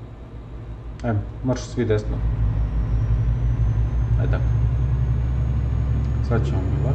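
A young man speaks briefly and casually into a microphone.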